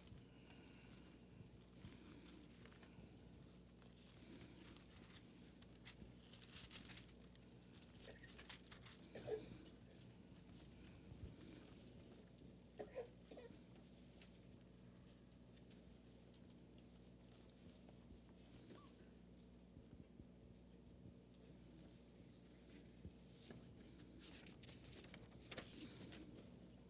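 A man reads out calmly into a microphone.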